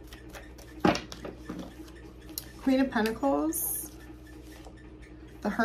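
Cards rustle and flick in a young woman's hands.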